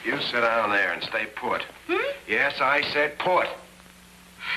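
A young woman speaks quickly up close.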